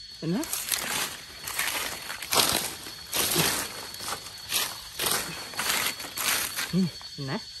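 Fingers scrape and rustle through dry leaves and soil close by.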